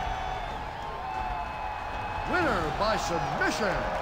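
A man shouts in triumph.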